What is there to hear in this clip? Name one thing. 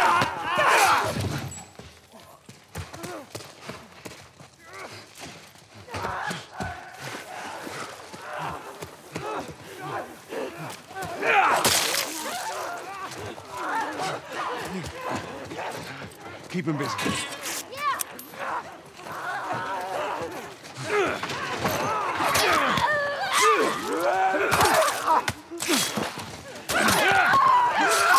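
Creatures shriek and snarl close by.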